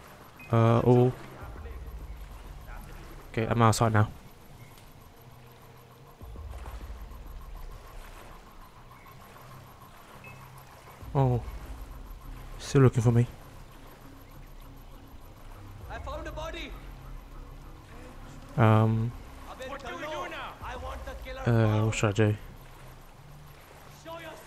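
Water splashes and laps as a swimmer moves through it.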